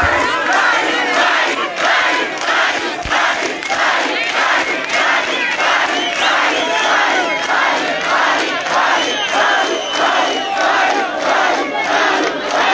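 A large crowd chants and claps in a steady rhythm.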